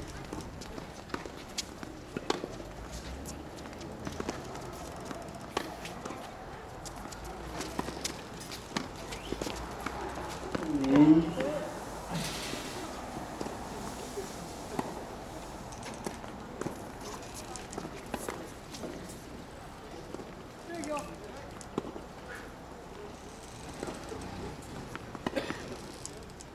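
Tennis balls are struck with rackets.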